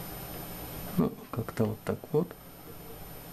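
Metal parts click and knock as a device is adjusted by hand.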